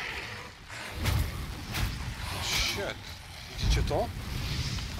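Blows land with heavy thuds in a fight.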